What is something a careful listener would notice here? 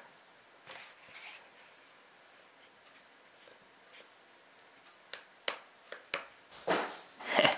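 Plastic toy bricks click and snap together as they are pressed into place.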